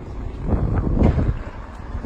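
A bicycle rolls past on the street.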